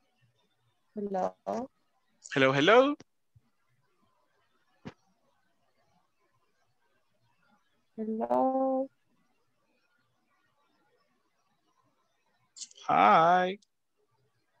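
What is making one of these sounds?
A woman speaks in short bursts over an online call.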